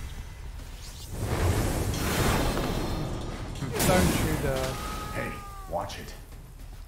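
A magical blast bursts with a loud rushing whoosh.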